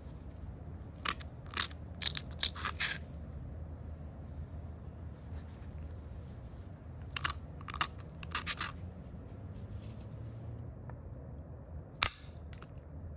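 Stone flakes snap off with sharp clicks.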